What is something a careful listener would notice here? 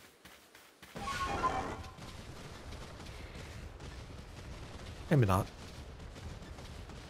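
A creature's footsteps thud through grass outdoors.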